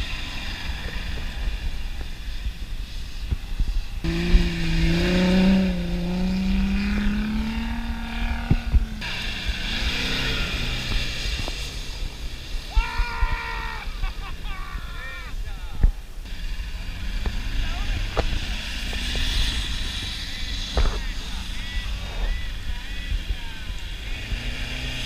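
An engine roars and revs hard as a vehicle climbs loose sand.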